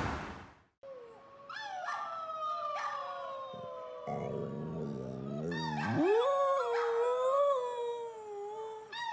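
A dog howls in long, wavering cries.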